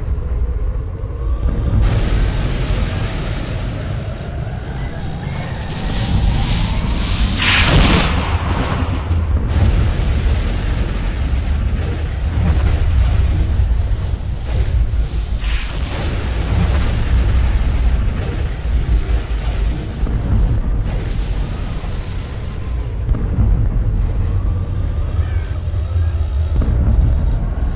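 Strong wind blows and gusts outdoors.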